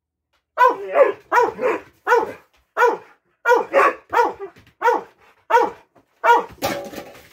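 A dog barks repeatedly close by.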